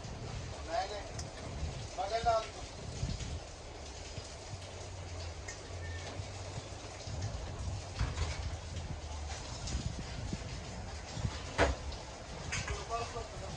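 Brass dishes clink and knock as they are handled.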